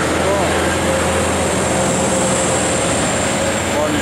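Off-road vehicle engines rumble as they drive past.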